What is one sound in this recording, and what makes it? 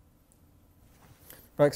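A man speaks briefly through a microphone in a large room.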